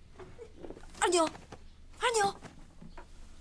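A young woman cries out a name in distress.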